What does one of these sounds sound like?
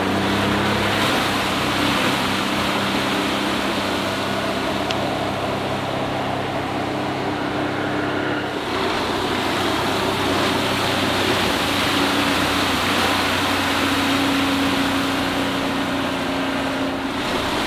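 Water hisses and splashes against an inflatable boat's hull as it planes.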